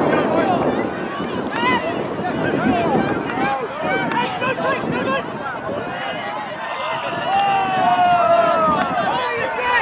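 Several young men shout and call out across an open field.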